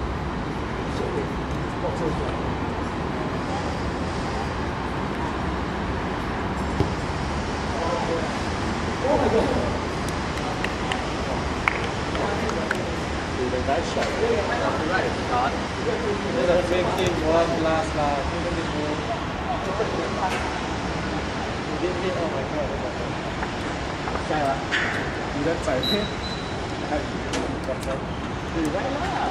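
Young men shout to each other across an open playing field.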